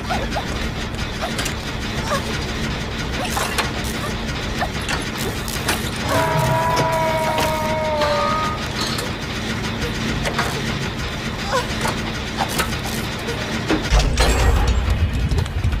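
A motor clatters and rattles while it is being repaired.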